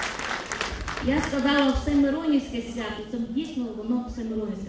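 A woman sings a slow, wavering melody into a microphone.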